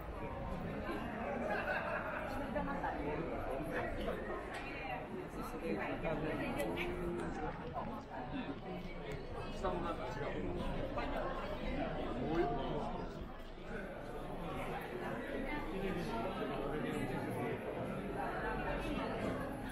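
A large crowd chatters and murmurs all around, outdoors.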